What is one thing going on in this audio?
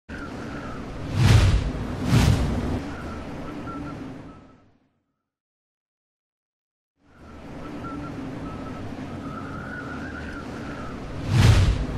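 Wind rushes steadily past high in the open air.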